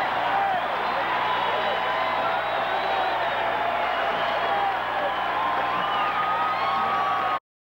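A large crowd cheers and whistles loudly outdoors.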